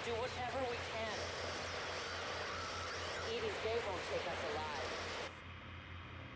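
A man speaks calmly over a radio.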